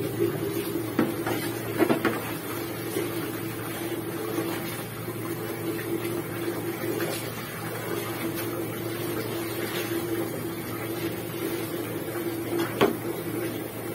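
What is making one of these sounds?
Water splashes as clothes are scrubbed by hand in a basin.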